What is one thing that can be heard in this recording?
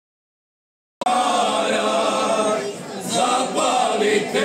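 A group of men sing together in harmony through microphones, outdoors.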